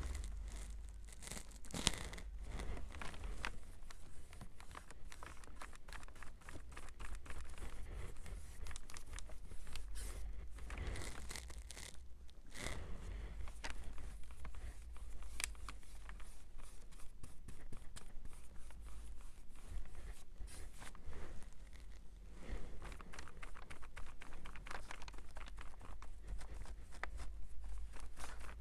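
A brush scrapes and dabs on cardboard.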